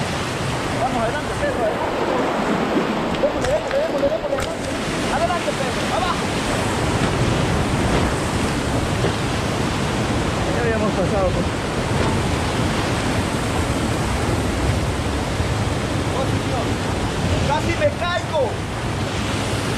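A man shouts over the roaring water.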